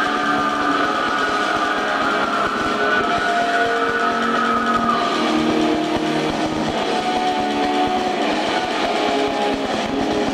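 A live rock band plays loudly.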